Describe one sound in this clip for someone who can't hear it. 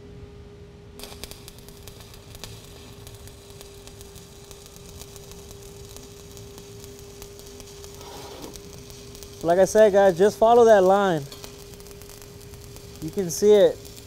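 An arc welder crackles and hisses steadily.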